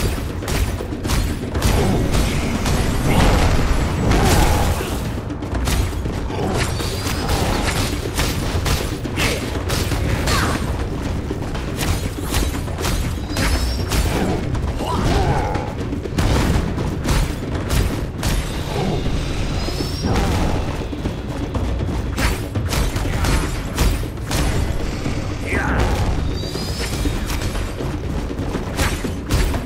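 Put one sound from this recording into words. Sharp hits and slashing blows clatter in quick succession.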